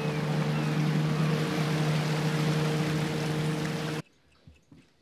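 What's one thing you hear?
A motorboat engine drones steadily.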